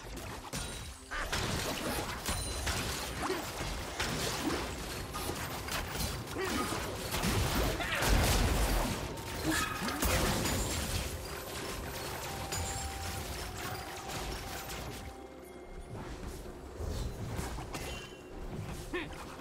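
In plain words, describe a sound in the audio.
Spell and battle effects crackle, whoosh and clash in rapid bursts.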